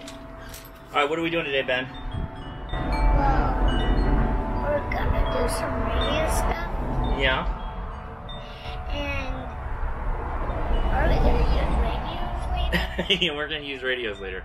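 A young boy speaks in a high voice.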